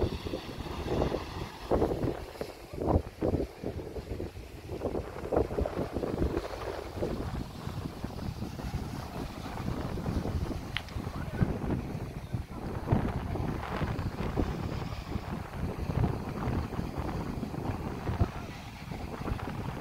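Waves wash onto the shore nearby.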